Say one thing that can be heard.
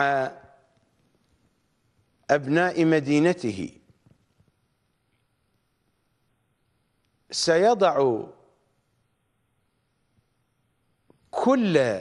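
A middle-aged man speaks calmly into a close microphone, in short phrases with long pauses.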